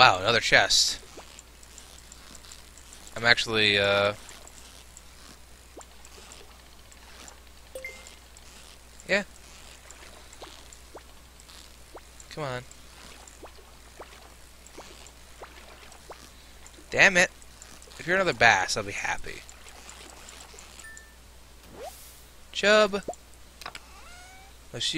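Rain patters steadily on water.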